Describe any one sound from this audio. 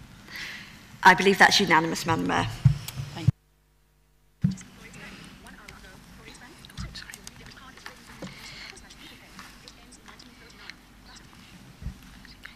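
A woman speaks calmly through a microphone in a large room.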